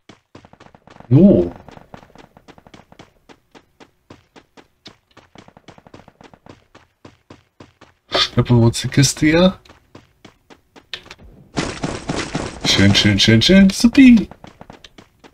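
A man talks with animation into a close microphone.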